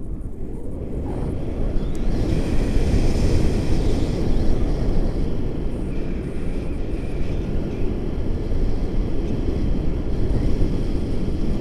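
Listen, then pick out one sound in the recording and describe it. Wind roars and buffets loudly outdoors.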